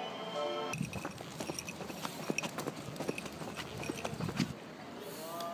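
A dog's paws patter and click on pavement.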